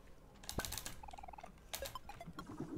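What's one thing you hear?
Short electronic blips chime in quick succession.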